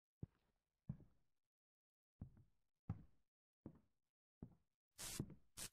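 Footsteps thud slowly on wooden stairs and floorboards.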